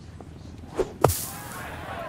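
A golf club strikes a ball with a sharp thud.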